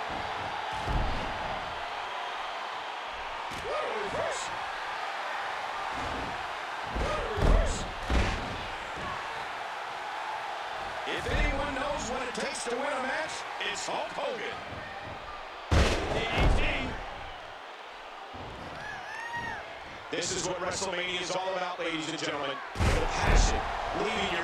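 Heavy thuds of bodies hitting a wrestling mat ring out now and then.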